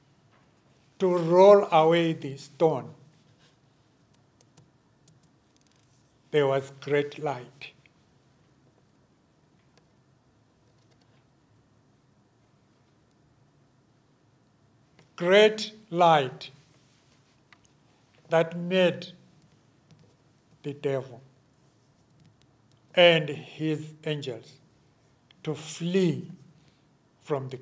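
An older man speaks slowly and deliberately into a microphone, with long pauses.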